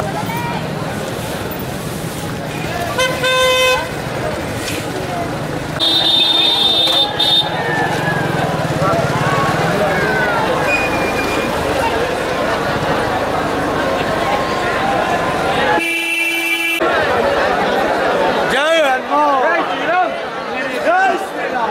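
A large crowd of men and women chatter and murmur outdoors.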